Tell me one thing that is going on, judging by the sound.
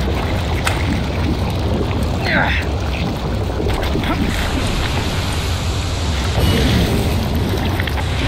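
Water gushes and splashes steadily from a spout.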